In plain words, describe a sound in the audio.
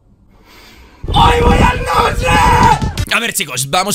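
A young man cheers loudly outdoors.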